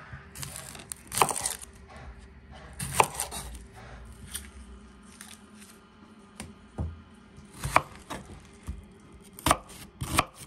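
A knife slices through an onion and knocks on a wooden board.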